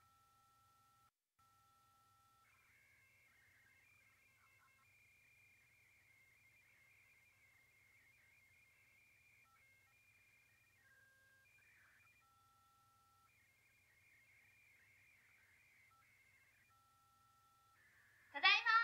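Quiet electronic game music plays a simple melody.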